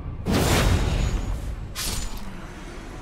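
A magical burst whooshes and crackles loudly.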